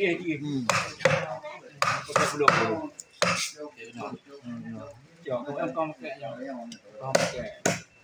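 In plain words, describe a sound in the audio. A knife chops and scrapes through fish on a board.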